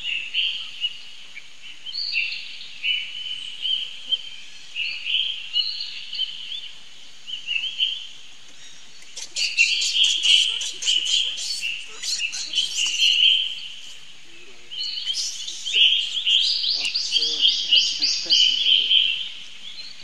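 A baby monkey squeals and cries in high, shrill bursts.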